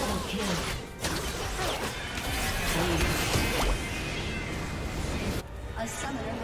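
Game spell effects crackle and clash loudly in a busy fight.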